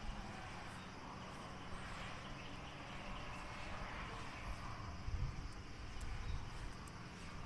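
A young woman speaks softly close to the microphone.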